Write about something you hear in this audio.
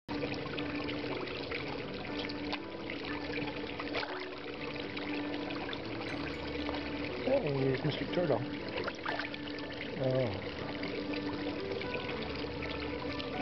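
Fish gulp and slurp noisily at the water's surface.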